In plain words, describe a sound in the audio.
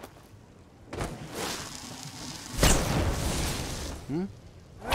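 A magic spell whooshes and crackles loudly.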